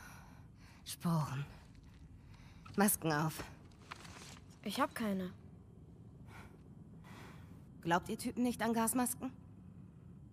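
A woman speaks quietly and tiredly, close by.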